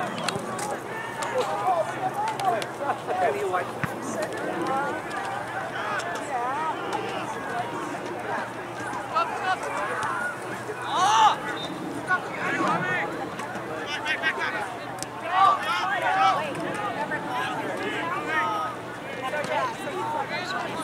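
Many people talk and shout outdoors in a busy crowd.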